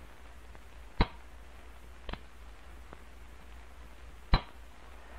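A pistol's hammer clicks sharply as it is dry-fired.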